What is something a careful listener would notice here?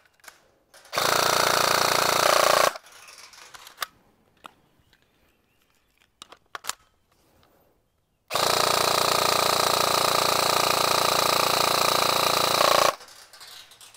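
A rifle fires long rapid bursts.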